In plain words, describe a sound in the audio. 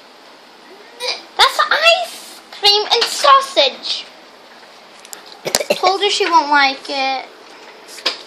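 A young girl talks animatedly close to a microphone.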